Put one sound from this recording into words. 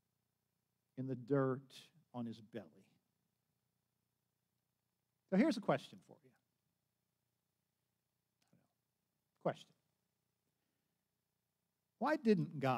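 An elderly man speaks calmly through a microphone, pausing often.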